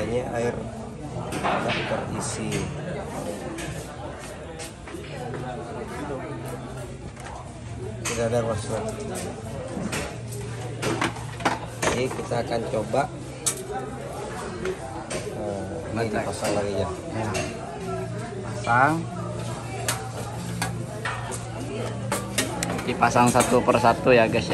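A young man talks calmly close by.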